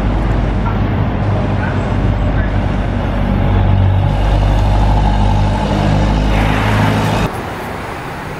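A bus engine hums loudly as the bus turns nearby.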